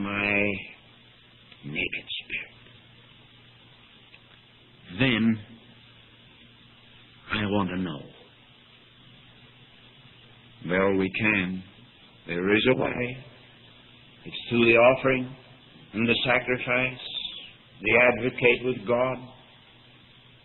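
A middle-aged man speaks slowly, in short phrases with long pauses, heard through a muffled old recording.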